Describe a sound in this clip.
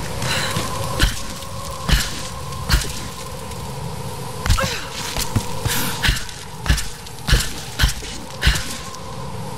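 Heavy thuds and scrapes come as a body slides down ice and rock.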